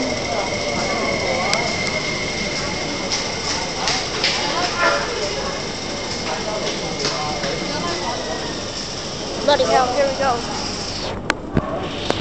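A train rushes past close by with a steady roar and rattle.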